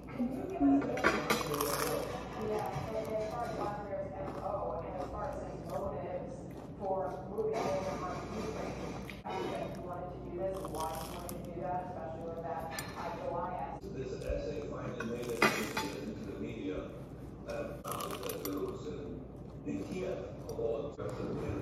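A young woman crunches loudly on crisp food while chewing.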